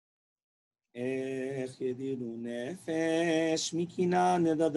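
A man chants in a loud, drawn-out singing voice through a microphone.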